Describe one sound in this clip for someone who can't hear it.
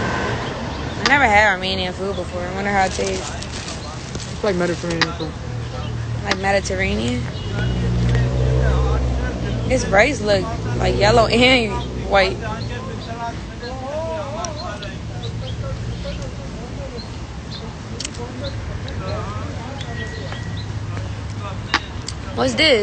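A young woman talks casually, close to a phone microphone.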